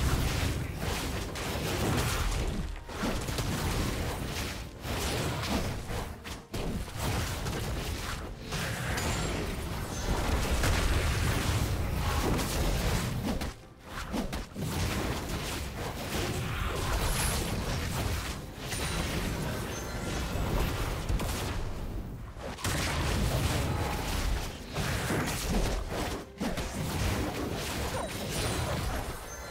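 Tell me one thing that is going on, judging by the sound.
Magic blasts and sword hits crackle and thud in a fast video game battle.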